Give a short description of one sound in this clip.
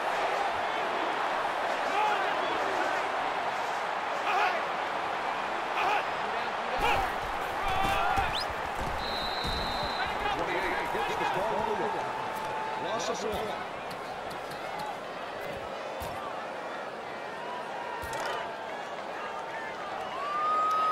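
A stadium crowd roars and cheers steadily.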